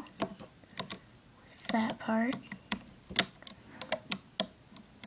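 Small plastic pieces click and tap under fingers.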